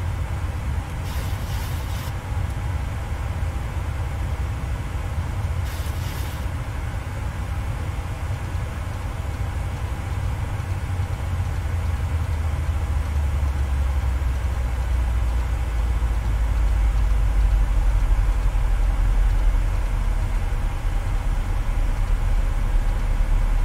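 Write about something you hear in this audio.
Jet engines hum with a steady low rumble that grows deeper and louder.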